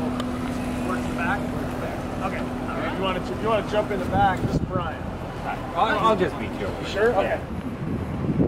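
An elderly man talks with animation close by.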